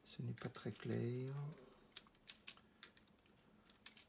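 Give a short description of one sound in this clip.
A small metal tool clicks and scrapes against a plastic case.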